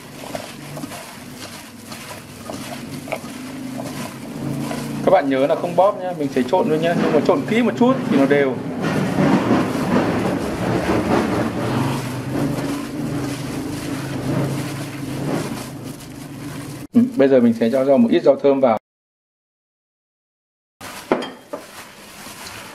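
Hands toss and squelch a wet salad in a metal bowl.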